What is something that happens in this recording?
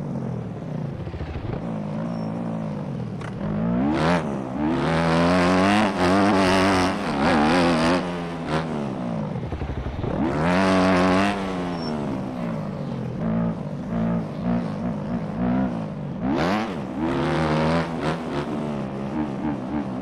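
A motocross bike engine revs up and down, rising and falling in pitch.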